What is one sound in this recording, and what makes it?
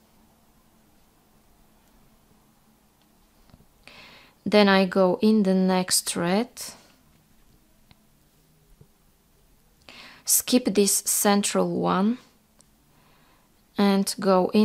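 A thread rustles softly as it is pulled through small beads.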